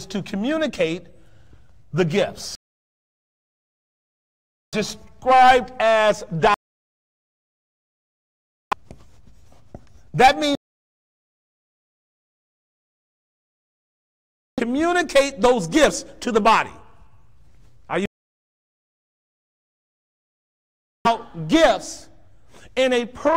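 A man preaches with animation through a microphone in a large echoing hall, pausing often between phrases.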